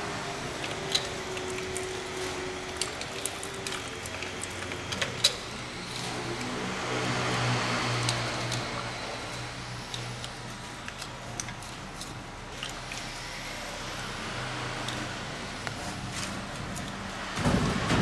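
Metal tools clink and scrape against metal parts.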